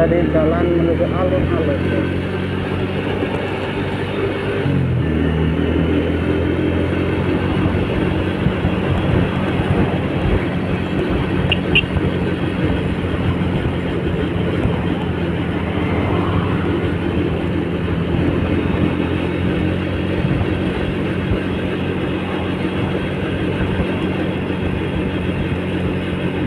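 Wind rushes past while riding.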